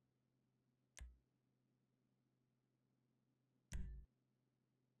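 A short game menu tone sounds twice.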